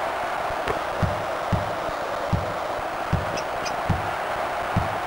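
A basketball bounces on a hardwood floor with dull thuds.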